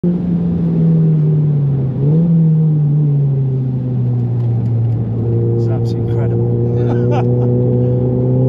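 A car engine drones loudly close by, its pitch dropping and rising as the car slows and speeds up.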